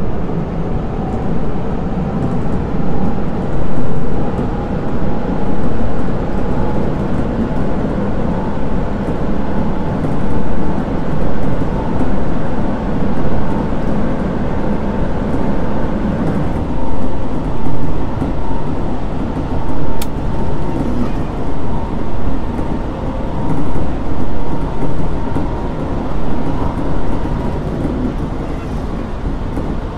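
A train's electric motor hums with a steady whine.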